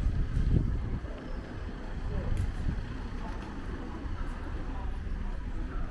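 A car drives slowly past on the street.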